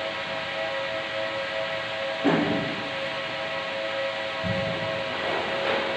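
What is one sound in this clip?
Footsteps thud on a hard floor nearby.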